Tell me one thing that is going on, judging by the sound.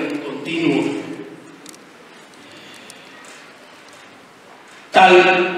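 A man speaks with animation into a microphone, heard through loudspeakers in a large echoing room.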